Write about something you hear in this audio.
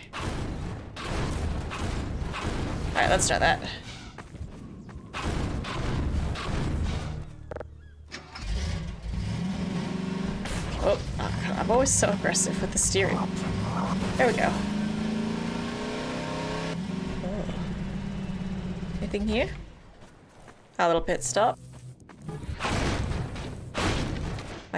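A young woman talks casually into a microphone.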